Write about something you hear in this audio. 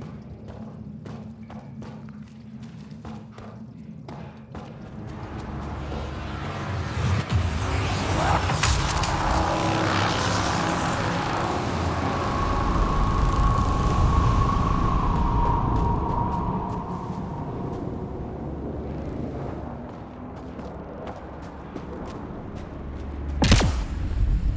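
Heavy footsteps crunch on rocky ground.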